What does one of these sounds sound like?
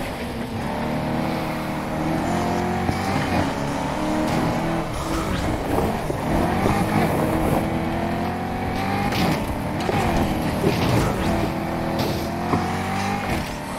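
A racing car engine roars at high revs, climbing in pitch through the gears.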